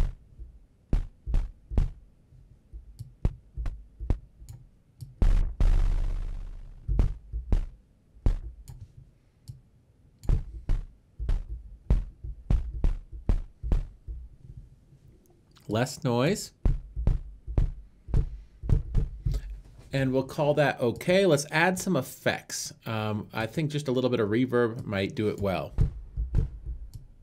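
A man plays short notes on a synthesizer keyboard.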